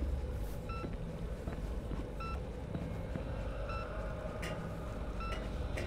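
Footsteps clank on a metal grate.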